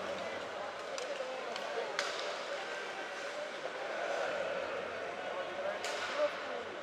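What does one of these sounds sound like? A hockey stick clacks against the puck.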